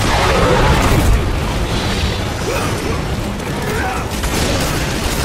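Blades slash and strike with sharp metallic hits.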